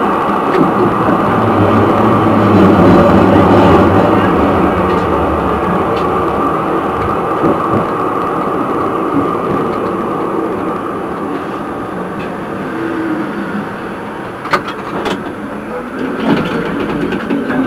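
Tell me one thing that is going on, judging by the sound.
A tram rolls along the rails, humming and rumbling steadily.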